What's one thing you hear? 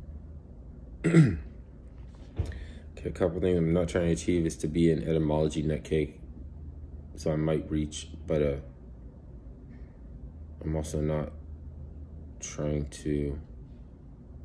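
A man speaks calmly and close to a phone microphone, in short phrases with pauses.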